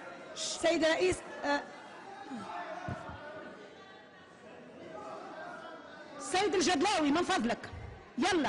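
A woman speaks calmly over a microphone.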